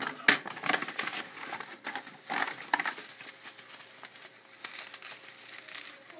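A paper envelope rustles.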